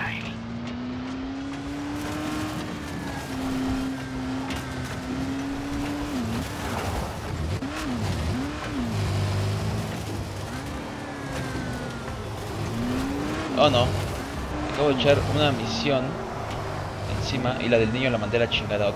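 A buggy engine revs and whines, rising and falling in pitch.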